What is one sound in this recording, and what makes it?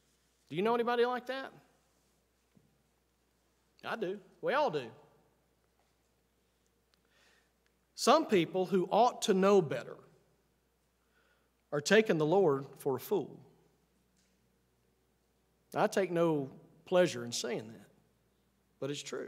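A middle-aged man speaks with emphasis into a microphone, in short phrases with pauses.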